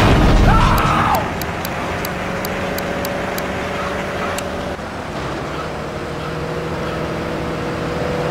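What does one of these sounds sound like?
A van engine drones as the van drives along a road.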